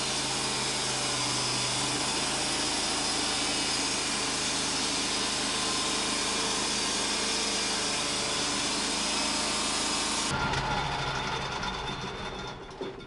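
A sawmill's engine and blade roar steadily up close.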